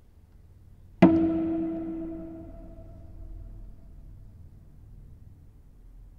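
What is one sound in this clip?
A cello sounds a sudden loud chord that rings out and slowly fades in a reverberant room.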